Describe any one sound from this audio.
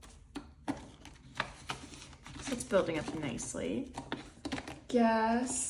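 Paper bills rustle and crinkle as hands handle them up close.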